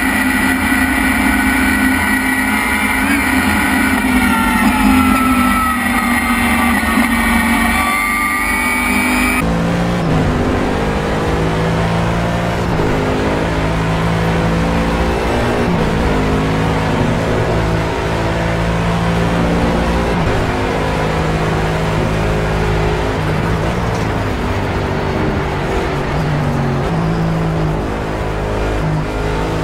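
A racing car engine roars loudly from inside the cabin, revving up and down through gear changes.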